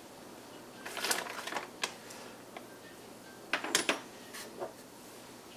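Plastic bags crinkle as hands rummage through them.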